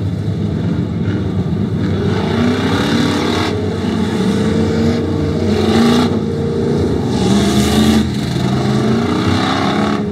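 Race car engines roar and rev loudly nearby.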